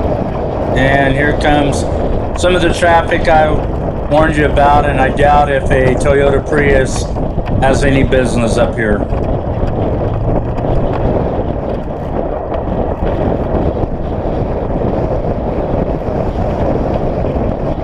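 A vehicle rumbles steadily over a gravel road.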